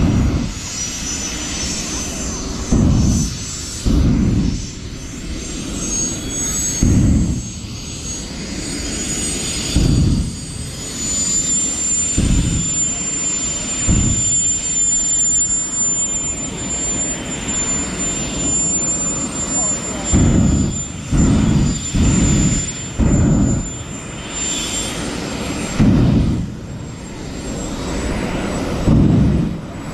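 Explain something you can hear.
A car engine revs hard in the distance.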